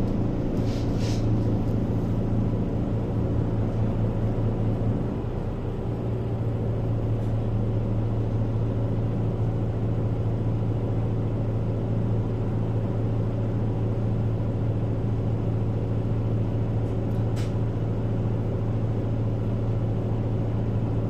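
A vehicle's engine hums low and steady while idling.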